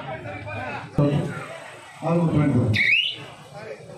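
A man close by shouts loudly.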